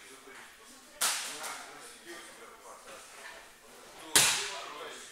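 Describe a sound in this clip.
A kick strikes a training pad with a sharp smack.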